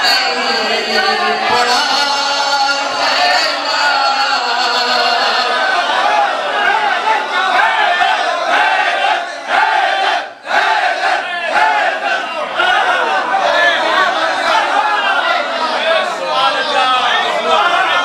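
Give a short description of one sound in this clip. An elderly man recites loudly and with feeling into a microphone.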